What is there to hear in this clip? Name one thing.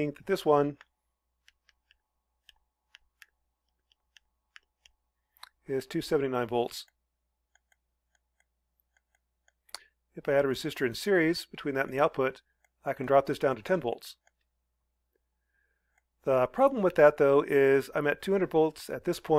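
A man talks calmly into a close microphone, explaining in short bursts with pauses.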